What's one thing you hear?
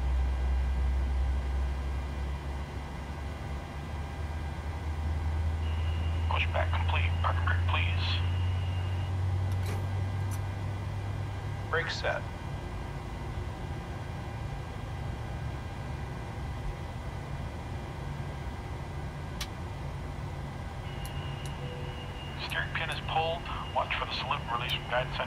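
A low, steady engine hum drones throughout.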